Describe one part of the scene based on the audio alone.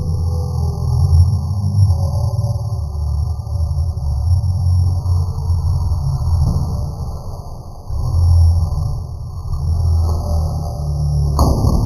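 A cardboard box tumbles down carpeted stairs with soft, muffled thuds.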